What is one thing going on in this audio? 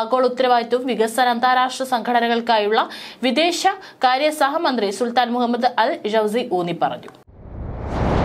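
A young woman speaks steadily and clearly into a microphone.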